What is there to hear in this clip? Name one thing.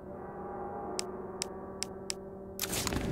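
Short menu clicks sound several times.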